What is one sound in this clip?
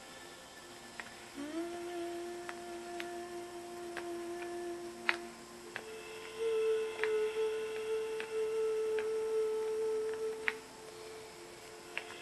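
A pen taps small plastic beads with light clicks.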